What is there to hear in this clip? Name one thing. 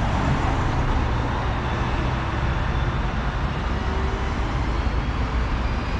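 A heavy truck engine rumbles nearby.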